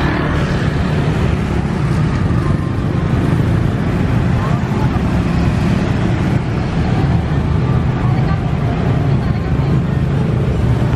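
Car engines rumble steadily along a busy road outdoors.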